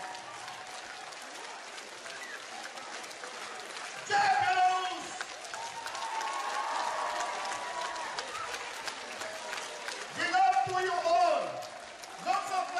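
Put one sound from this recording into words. An audience in a large hall cheers and shouts.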